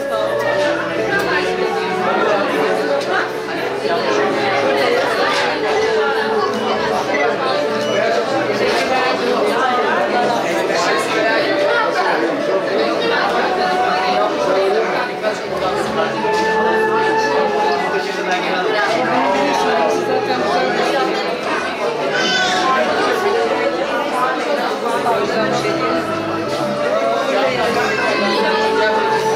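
Men and women chatter and laugh nearby.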